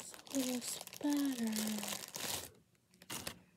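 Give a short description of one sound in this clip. A woman speaks close to the microphone.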